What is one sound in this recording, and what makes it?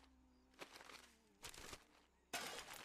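A wooden post cracks and splinters.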